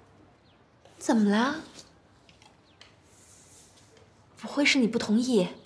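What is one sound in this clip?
A young woman speaks nearby in a questioning, concerned tone.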